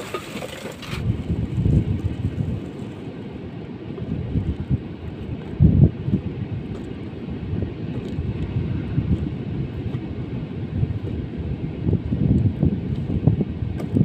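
Wind blows and rumbles against the microphone outdoors.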